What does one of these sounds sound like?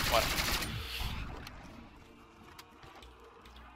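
A rifle magazine clicks as it is reloaded.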